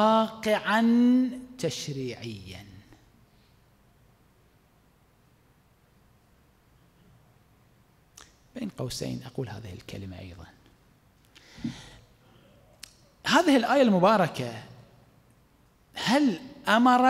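A man speaks with animation into a microphone in an echoing room, pausing between phrases.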